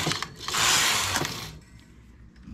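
A knitting machine carriage slides across the needle bed with a rasping whir.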